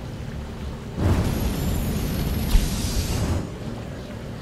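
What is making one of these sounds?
A burst of flame roars with a loud whoosh.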